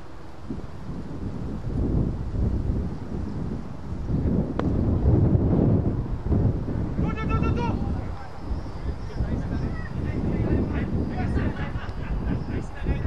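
Wind rumbles across the microphone outdoors.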